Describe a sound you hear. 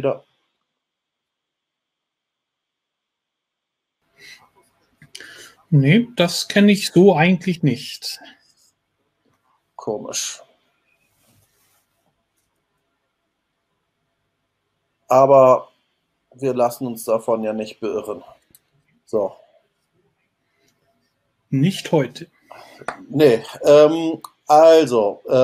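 A middle-aged man speaks calmly into a close microphone, in bursts with pauses.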